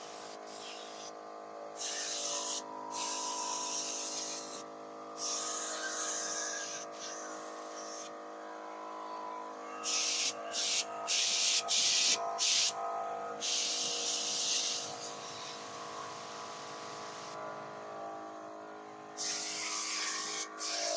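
An air compressor hums steadily.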